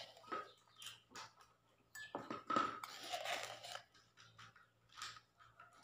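A spoon clinks against a plastic cup.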